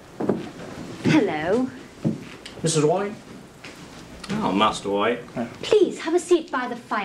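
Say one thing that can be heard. A woman speaks with emotion close by.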